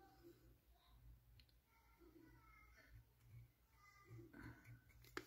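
A soft plastic bottle is squeezed with a faint crinkle.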